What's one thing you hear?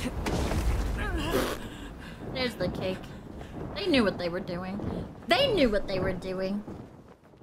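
A young woman speaks with animation through a microphone, close by.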